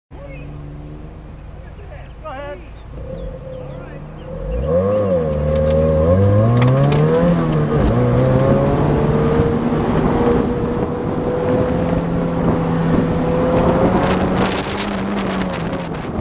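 Tyres squeal on pavement during sharp turns.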